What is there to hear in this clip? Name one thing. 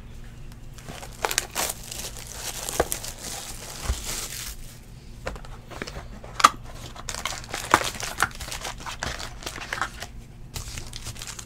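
Plastic wrapping crinkles and rustles as it is torn open.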